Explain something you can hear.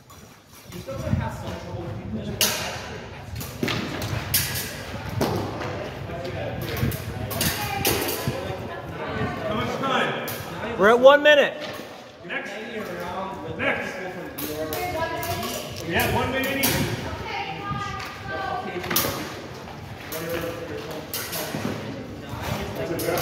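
Wooden practice swords clack together sharply.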